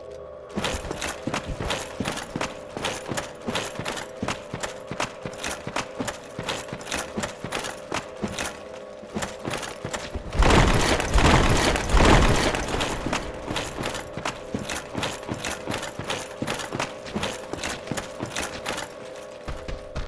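Armoured footsteps clank steadily on rocky ground.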